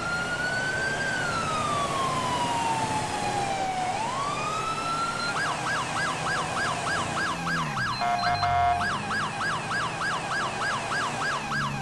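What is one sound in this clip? A police siren wails steadily, then switches to a fast yelp.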